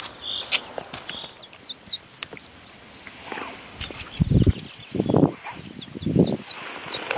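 A duckling peeps in short high chirps.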